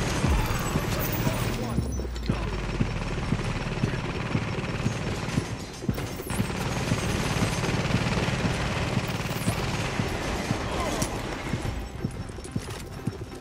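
Rifle gunfire cracks.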